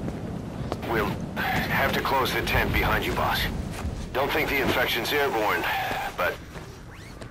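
A second man speaks calmly.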